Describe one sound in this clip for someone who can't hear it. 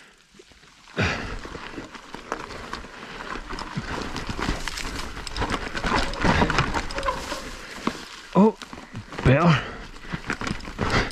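Bike tyres crunch and rattle over rough gravel and dirt.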